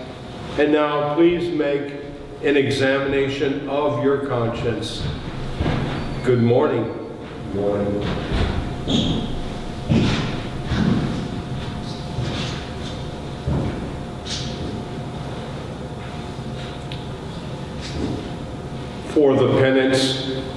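An elderly man chants in a sung voice through a microphone, echoing in a large room.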